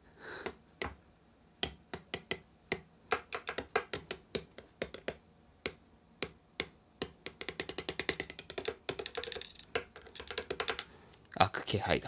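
A metal tip taps and scratches on a tin can lid in quick bursts.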